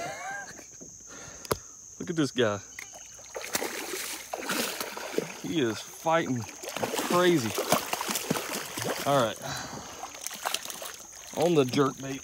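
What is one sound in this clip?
A fish splashes and thrashes in water.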